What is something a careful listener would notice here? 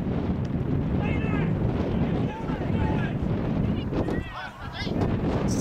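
Men shout from a distance across an open field.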